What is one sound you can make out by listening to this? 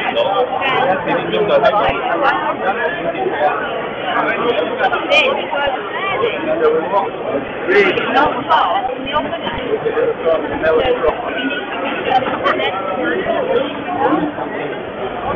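A crowd of men and women chatters all around, close by, outdoors.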